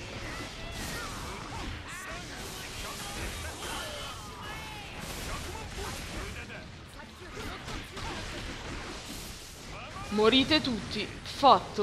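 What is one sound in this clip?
Electricity crackles and booms like lightning.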